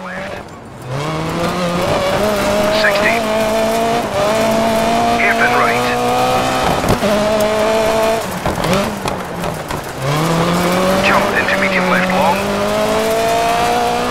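Tyres skid and scrabble on loose dirt.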